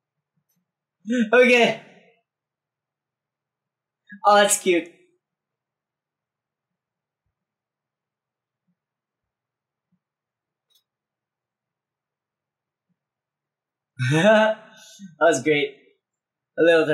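A young man speaks in short, cheerful bursts close by, with quiet pauses between.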